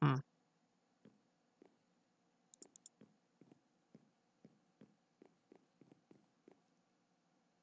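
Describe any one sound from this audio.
Footsteps tap lightly on stone.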